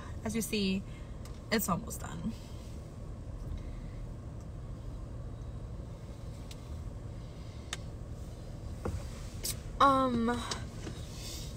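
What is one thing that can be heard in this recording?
A young woman speaks casually and close by, through a phone.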